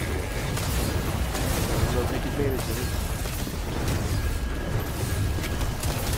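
Video game explosions boom.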